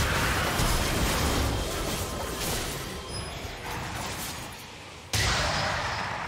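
Game spell effects crackle and burst during a fight.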